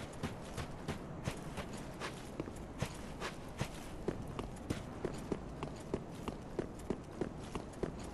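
Armoured footsteps crunch quickly over stone.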